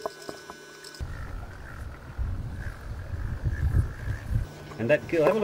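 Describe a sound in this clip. A fishing reel whirs as its handle is turned.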